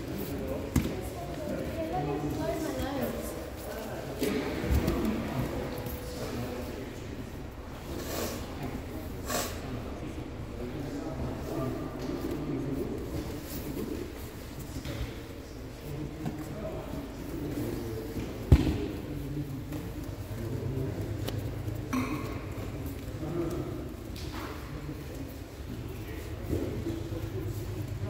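Bodies shuffle and scuff on mats close by.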